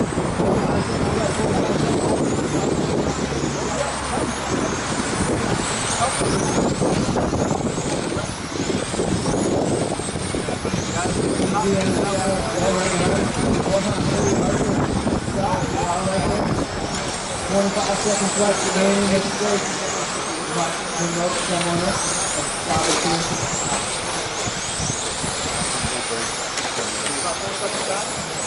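Small electric racing cars whine as they speed around and rise and fall in pitch.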